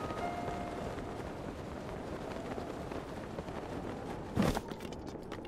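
Wind rushes steadily past a gliding figure.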